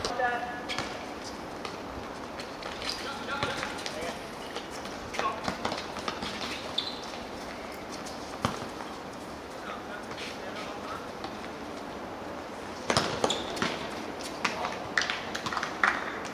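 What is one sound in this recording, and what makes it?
Young men shout to each other from across the court.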